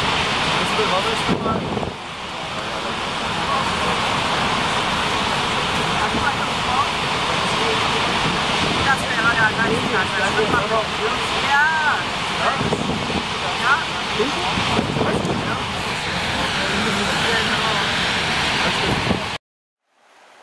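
A large waterfall roars loudly close by.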